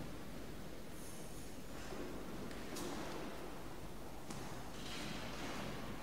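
A woman reads aloud calmly in a large echoing hall.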